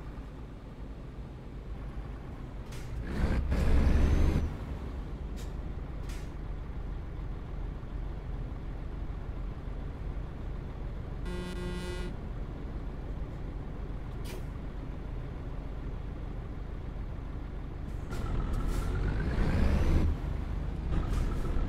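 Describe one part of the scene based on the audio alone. A truck engine rumbles low and steady, swelling louder now and then.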